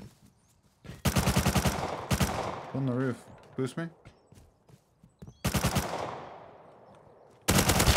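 A rifle fires rapid bursts that echo and fade.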